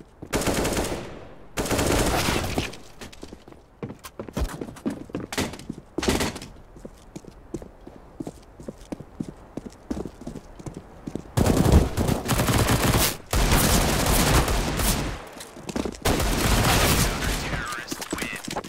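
Rifle shots crack in rapid, loud bursts.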